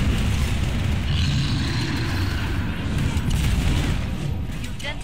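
A flamethrower roars in a burst of fire.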